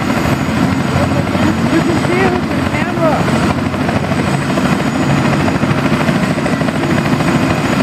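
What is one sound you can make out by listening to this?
A single-engine turbine helicopter runs outdoors on the ground with its rotor turning.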